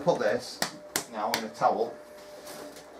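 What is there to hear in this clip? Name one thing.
Hands pat and slap soft dough.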